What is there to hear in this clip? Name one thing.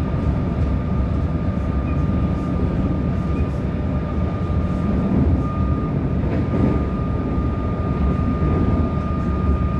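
A steady high whine from the train's motor runs throughout.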